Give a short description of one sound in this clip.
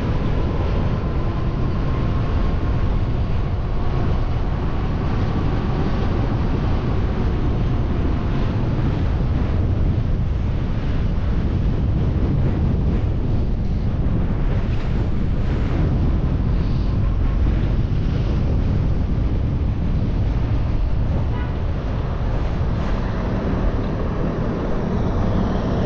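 Wind rushes and buffets loudly and steadily while travelling down a street outdoors.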